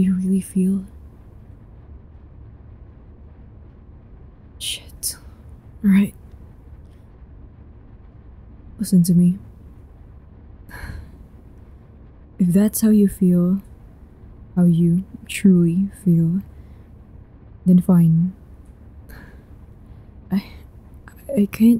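A young woman speaks slowly and calmly in short phrases, close to a microphone.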